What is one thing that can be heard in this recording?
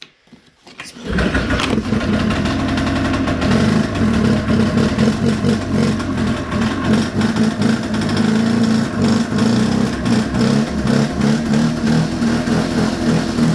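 An engine runs with a loud, rough, uneven rumble close by.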